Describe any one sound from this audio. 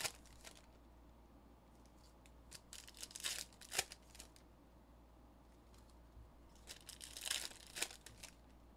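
Trading cards rustle and click as a hand shuffles through a stack.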